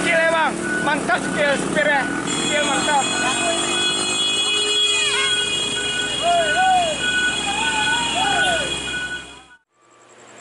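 A heavy truck engine rumbles close by.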